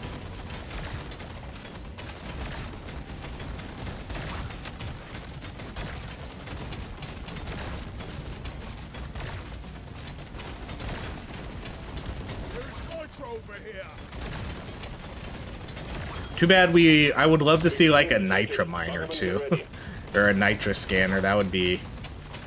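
Rapid laser gunfire crackles and buzzes.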